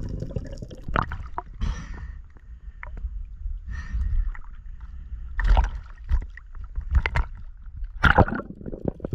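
Small waves splash and lap close by.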